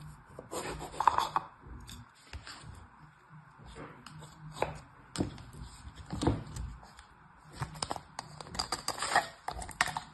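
Plastic moulds tap and clack together.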